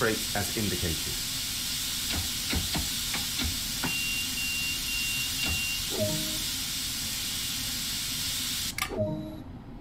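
Air hisses steadily from a train's brakes, then cuts off.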